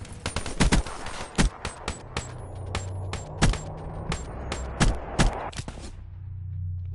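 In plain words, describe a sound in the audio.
Rapid gunshots ring out.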